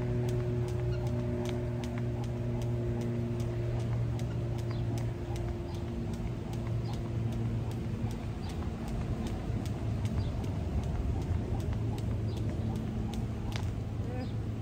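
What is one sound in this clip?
A skipping rope slaps the pavement in a quick, steady rhythm.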